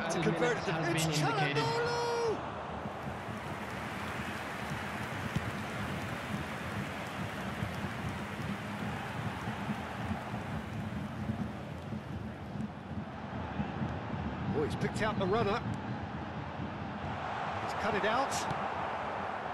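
A stadium crowd roars and murmurs steadily throughout.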